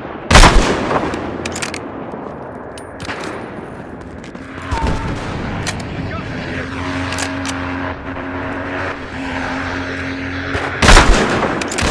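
A sniper rifle fires with a loud crack.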